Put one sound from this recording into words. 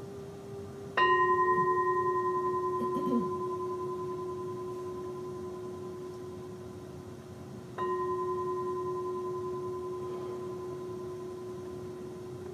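A metal singing bowl is struck twice and rings with a long, slowly fading hum.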